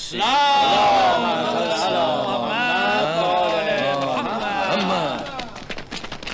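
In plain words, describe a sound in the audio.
A crowd of men shouts and cheers loudly together.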